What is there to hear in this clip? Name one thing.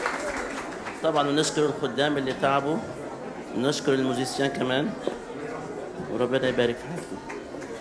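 An elderly man speaks with feeling through a microphone in an echoing hall.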